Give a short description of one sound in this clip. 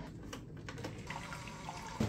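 Coffee trickles into a mug.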